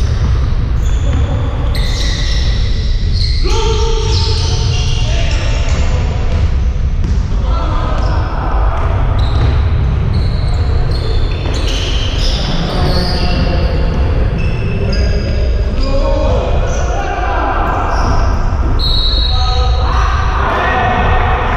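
Players' footsteps thud and pound across the court.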